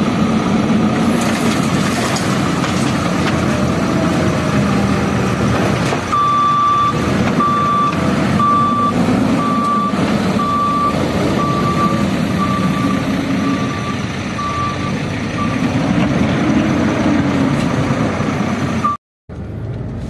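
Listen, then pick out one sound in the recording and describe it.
A heavy loader's diesel engine rumbles and roars close by.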